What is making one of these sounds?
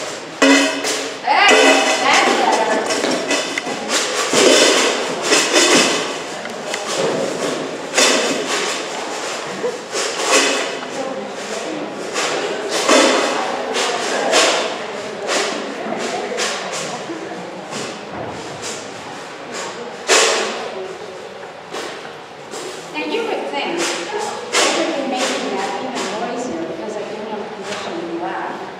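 An elderly man speaks calmly, his voice echoing in a large hall.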